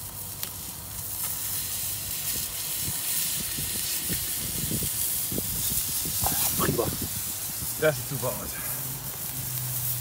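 Food sizzles on a hot grill.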